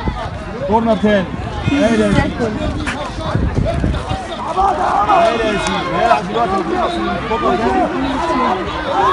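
Young players shout to each other across an open pitch.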